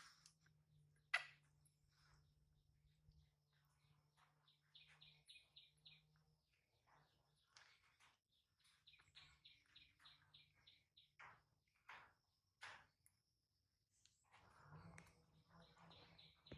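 A baby monkey smacks its lips while eating.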